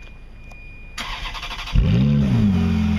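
A Ferrari F430 V8 engine cranks and fires up.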